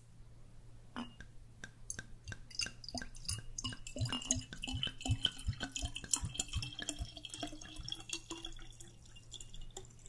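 Liquid glugs from a bottle into a glass, its pitch slowly rising as the glass fills.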